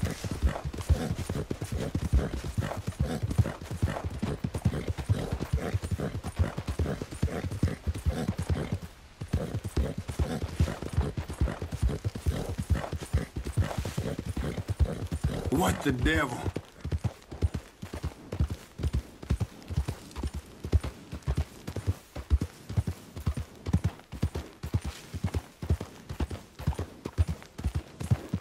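Horse hooves thud rhythmically on a dirt path.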